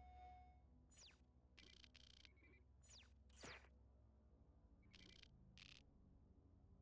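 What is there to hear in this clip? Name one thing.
Short electronic beeps sound from a game menu.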